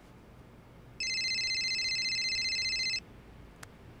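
A phone rings.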